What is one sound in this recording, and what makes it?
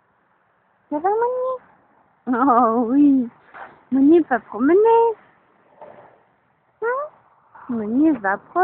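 A small dog yelps and whines excitedly close by.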